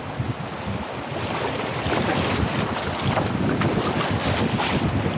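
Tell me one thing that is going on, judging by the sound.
River rapids rush and churn close by.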